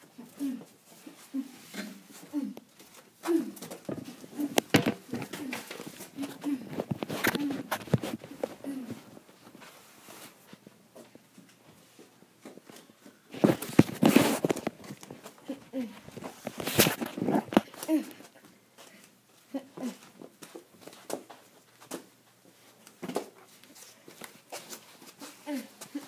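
A young child talks excitedly close by.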